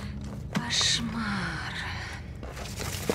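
A young woman says a few words in surprise, close by.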